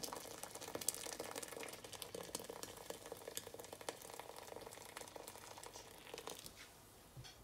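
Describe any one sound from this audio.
Water pours from a kettle into a pot and splashes.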